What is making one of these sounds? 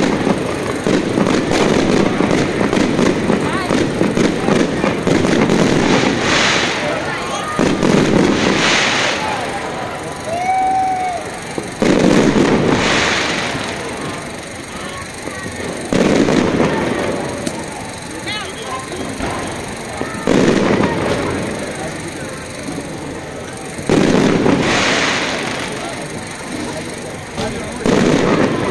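Sparks from fireworks crackle and sizzle in the air.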